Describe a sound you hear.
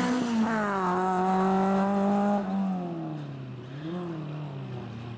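A small car engine revs hard and then drops in pitch as the car drives away.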